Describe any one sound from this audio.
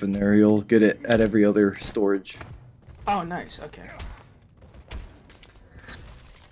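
A blade slashes and thuds wetly into flesh.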